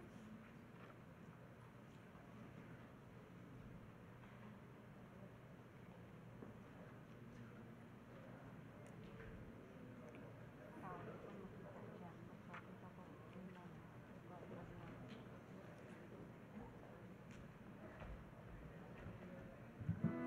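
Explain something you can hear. A crowd of men and women chat quietly in the background.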